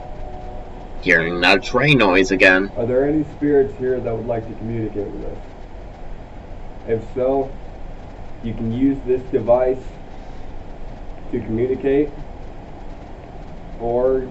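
A young man speaks quietly and calmly, close by.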